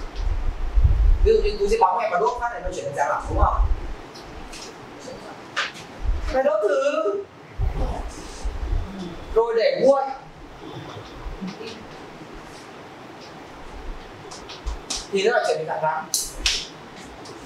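A young man lectures calmly.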